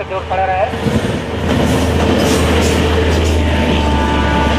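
A train's horn blares loudly.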